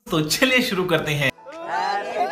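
A man speaks cheerfully close to a microphone.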